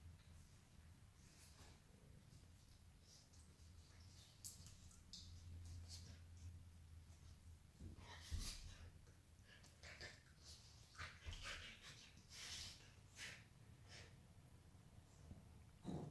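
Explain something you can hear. A dog growls playfully.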